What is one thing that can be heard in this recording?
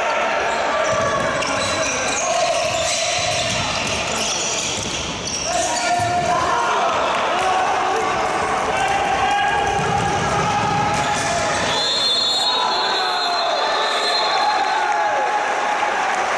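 A crowd of spectators chants and cheers in a large echoing indoor hall.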